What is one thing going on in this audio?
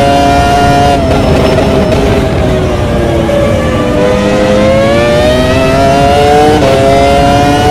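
A racing car engine drops in pitch while braking for a corner, then climbs again.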